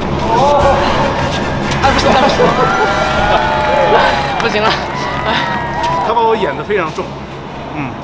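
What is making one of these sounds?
Men laugh loudly and cheerfully nearby.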